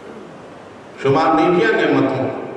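An elderly man speaks slowly and earnestly into a microphone, heard through a loudspeaker.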